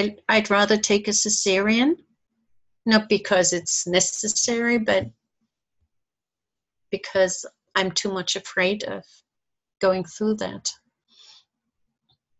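A middle-aged woman speaks calmly over an online call, then falls silent.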